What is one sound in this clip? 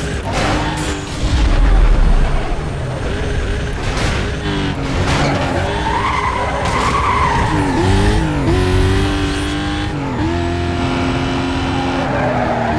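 A car engine roars at high revs, dropping in pitch with each gear change.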